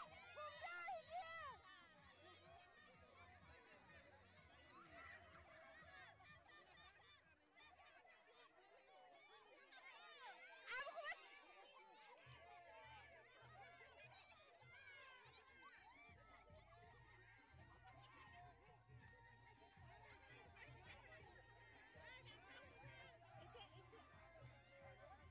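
A large crowd of women chatters and calls out outdoors.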